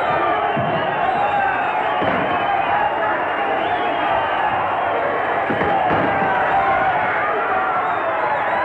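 A large crowd shouts and cheers throughout.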